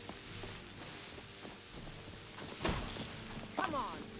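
A bow string twangs as an arrow is loosed.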